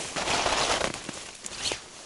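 Leaves and grass rustle close by.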